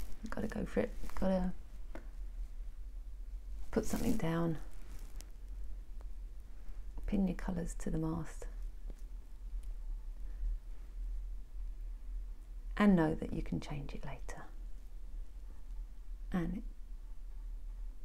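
A paintbrush brushes softly across canvas.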